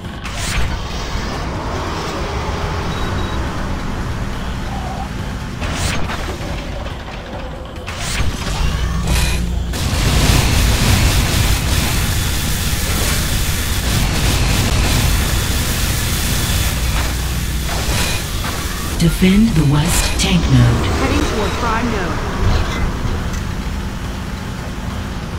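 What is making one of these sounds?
A vehicle engine roars and revs.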